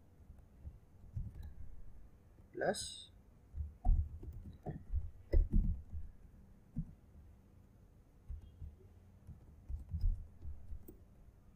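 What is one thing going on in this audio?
Keys click on a laptop keyboard.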